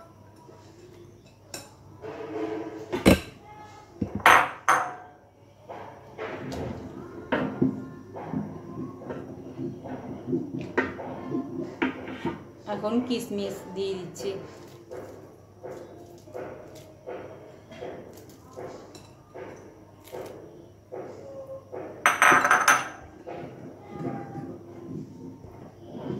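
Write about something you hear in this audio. A wooden spoon stirs thick liquid and scrapes against a metal pot.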